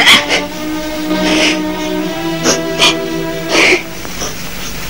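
A woman sobs and wails close by.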